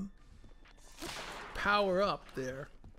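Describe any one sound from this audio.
A weapon shatters with a sharp, glassy crash.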